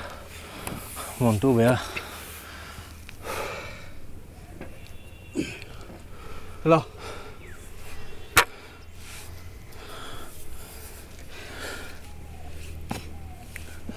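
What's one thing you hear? A hoe scrapes and thuds into dry sand.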